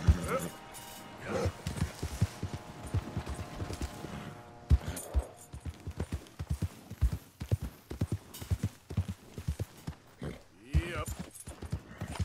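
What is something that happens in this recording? Horse hooves thud rhythmically at a gallop.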